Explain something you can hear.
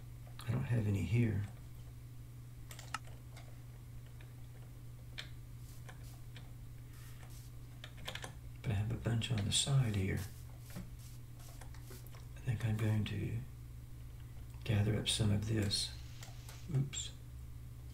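An elderly man speaks calmly into a close microphone, in short bursts.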